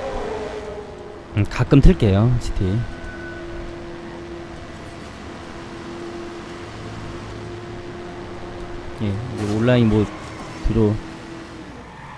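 A sports car engine hums steadily as it speeds along.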